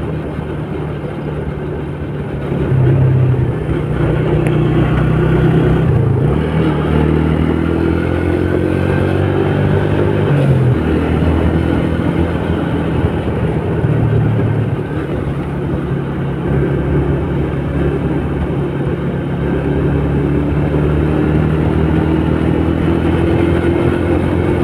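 A scooter engine hums steadily and rises and falls in pitch as it speeds up and slows down.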